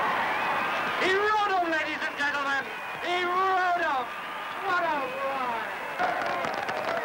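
An adult man announces loudly through a megaphone.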